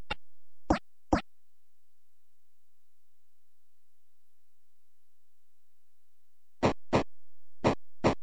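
Short, harsh video game blasts sound in quick bursts.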